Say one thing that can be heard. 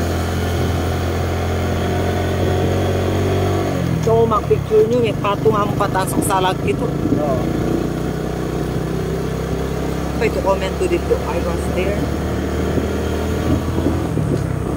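A vehicle engine hums steadily.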